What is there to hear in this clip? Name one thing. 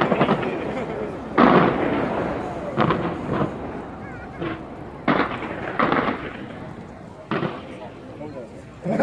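Fireworks crackle in the distance.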